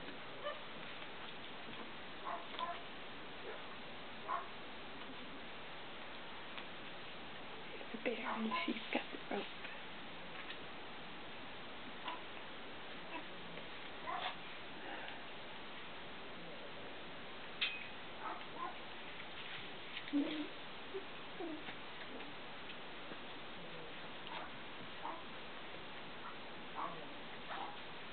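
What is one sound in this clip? Puppies yip and squeak softly now and then.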